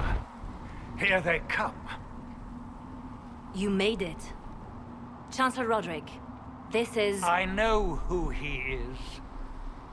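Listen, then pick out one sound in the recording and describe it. A man speaks calmly and evenly.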